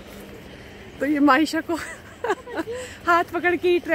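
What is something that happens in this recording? A young girl talks excitedly nearby.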